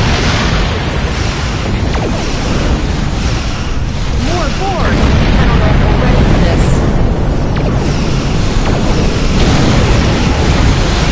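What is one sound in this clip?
Explosions rumble deeply and steadily.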